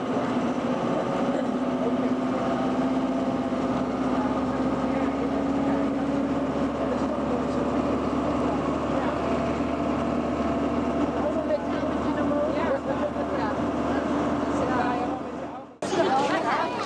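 A train rumbles along steadily on its tracks.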